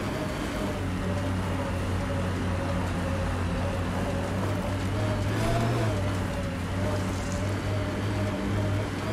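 A vehicle engine drones steadily as it climbs a rocky slope.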